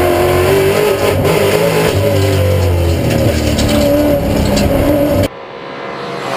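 A race car engine roars loudly from inside the cabin.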